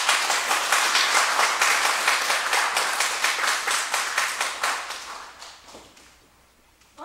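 An audience applauds loudly in an echoing hall, then fades.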